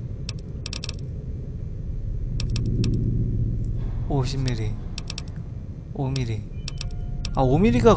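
Short game menu clicks tick in quick bursts.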